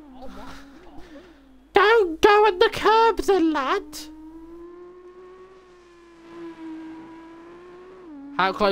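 A racing car engine whines at high speed, its pitch rising and falling as the car changes gear.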